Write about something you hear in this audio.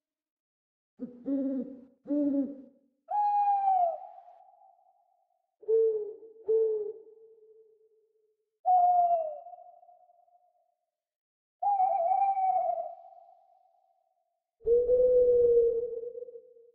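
An owl hoots and screeches in repeated calls.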